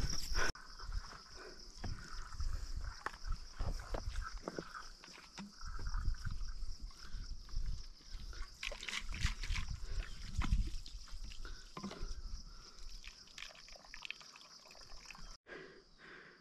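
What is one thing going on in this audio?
Dry straw rustles and crackles close by.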